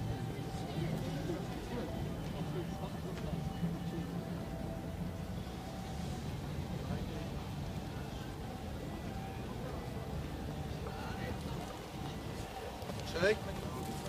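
A steady low traffic rumble fills an open street.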